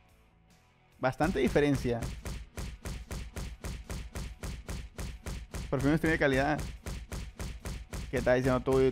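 Rapid thumping punches hit a training dummy over and over.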